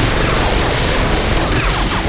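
Explosions burst and kick up dirt close by.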